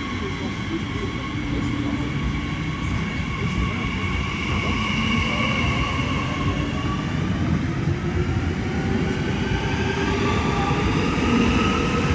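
A train rolls along the platform close by with a low, steady rumble.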